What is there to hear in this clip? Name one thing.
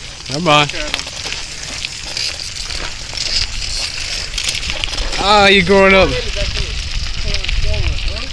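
Bicycle tyres roll over a dirt track.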